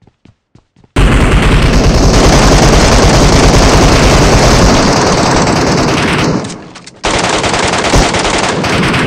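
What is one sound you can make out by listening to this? Rifles fire in loud, rapid bursts.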